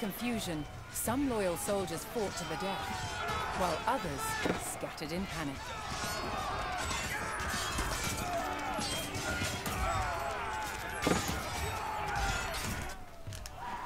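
Swords clash in a battle.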